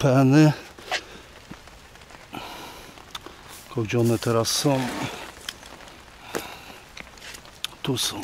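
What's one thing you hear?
Hands rustle through grass and fishing gear.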